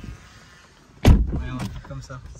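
A car door slams shut with a solid thud.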